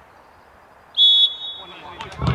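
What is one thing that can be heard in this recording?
A referee's whistle blows sharply outdoors.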